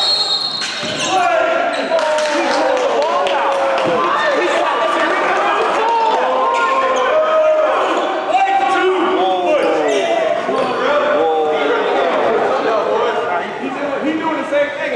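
Sneakers squeak sharply and often on a wooden court in a large echoing gym.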